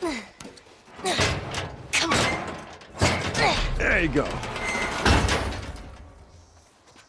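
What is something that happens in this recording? A metal ladder scrapes and clanks as it is pulled down.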